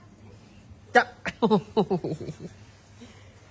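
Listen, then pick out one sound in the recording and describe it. A toddler giggles close by.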